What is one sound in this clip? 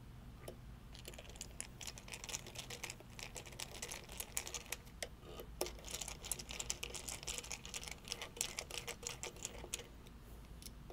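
A screwdriver scrapes and ticks as it turns a small screw.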